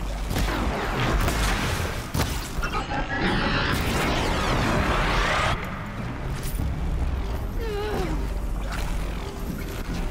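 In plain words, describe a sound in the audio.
Electricity crackles and buzzes in sharp bursts.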